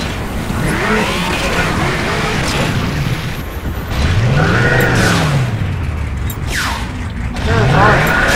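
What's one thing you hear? A helicopter's rotor whirs and thumps nearby.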